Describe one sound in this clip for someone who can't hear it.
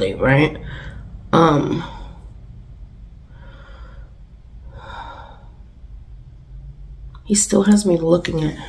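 A young woman speaks close to a microphone, with emotion.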